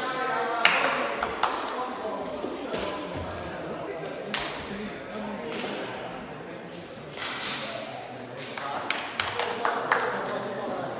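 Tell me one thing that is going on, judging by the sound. A shuttlecock is struck with a sharp pop.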